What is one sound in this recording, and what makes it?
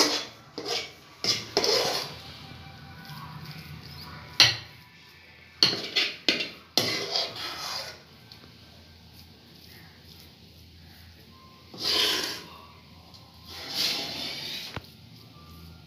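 A metal spoon scrapes and clinks against a metal pan.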